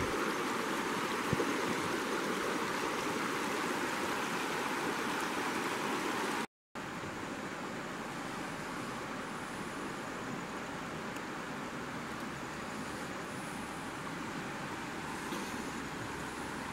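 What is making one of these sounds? A fast stream rushes and splashes over rocks.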